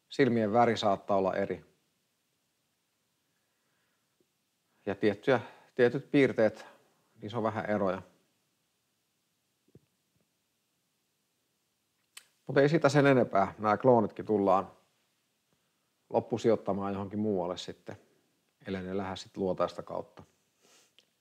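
A middle-aged man talks calmly into a close microphone, with pauses.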